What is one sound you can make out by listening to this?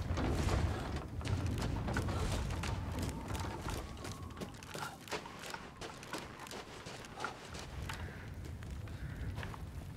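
Footsteps crunch through snow at a steady walking pace.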